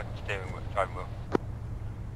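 A man speaks briefly into a headset microphone.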